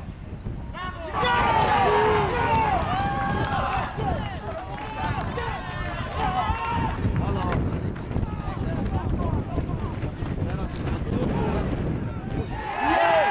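A group of men cheer and shout outdoors.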